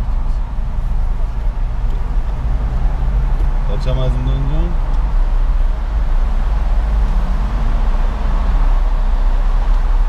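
A car engine hums steadily while driving in traffic.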